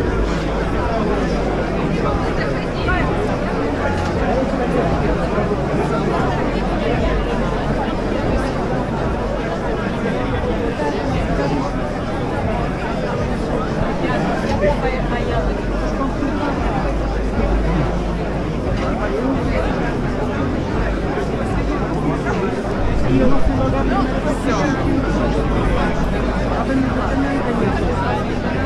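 A large crowd chatters loudly all around in an echoing hall.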